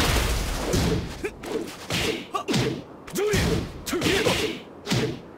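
Punches and kicks land with sharp, heavy impacts, again and again.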